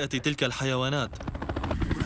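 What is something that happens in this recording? A helicopter hovers with a thudding rotor.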